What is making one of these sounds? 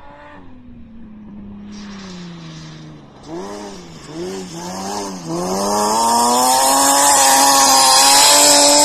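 A car engine roars loudly close by, revving up and down.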